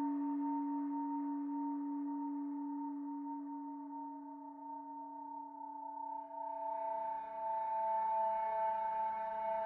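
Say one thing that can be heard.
A synthesizer plays steady droning electronic tones that swell and grow brighter near the end.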